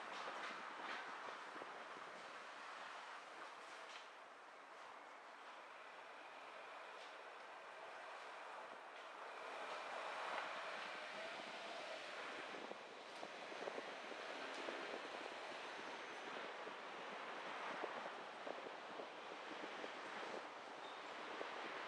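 Tyres roll and rumble over a road.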